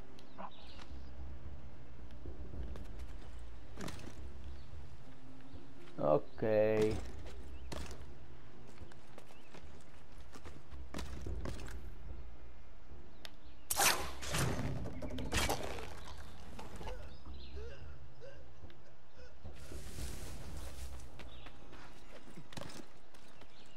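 Branches creak and rustle as someone climbs and leaps between trees.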